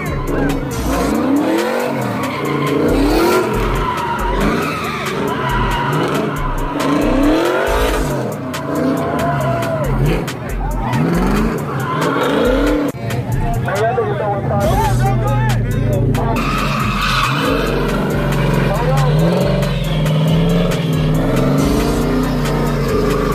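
A car engine revs loudly, rising and falling.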